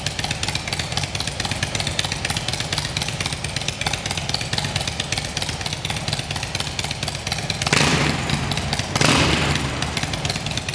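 A motorcycle engine idles with a fast, rough putter, echoing in a large enclosed space.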